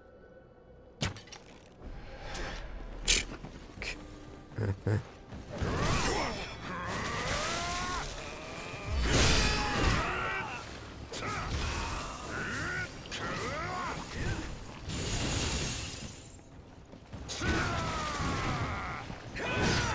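Swords clash and strike in a fast fight.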